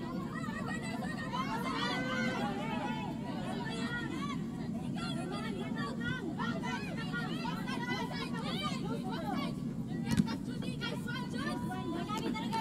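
Young women call out to one another across an open field.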